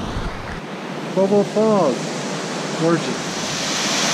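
An older man speaks calmly close by.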